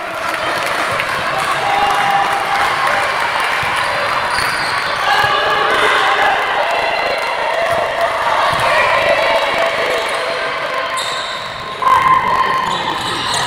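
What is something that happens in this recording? Sneakers squeak on a court floor.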